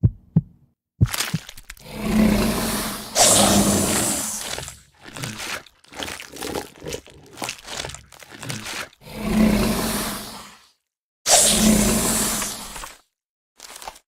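A monster roars and chomps noisily.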